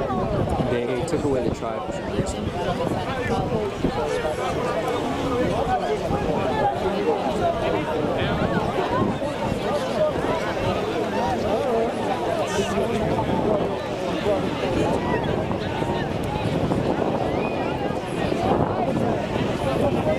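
A crowd of young men and women talk and call out over one another outdoors.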